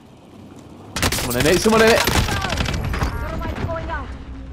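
An automatic rifle fires a burst of shots.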